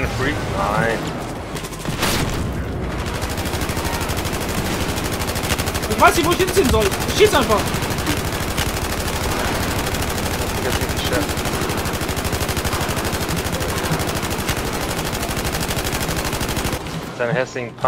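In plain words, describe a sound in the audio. A rifle fires rapid, continuous bursts.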